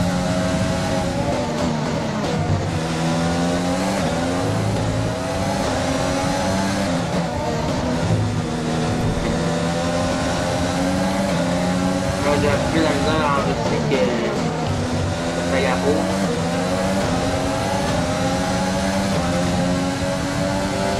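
A racing car engine screams at high revs, rising and dropping as gears shift.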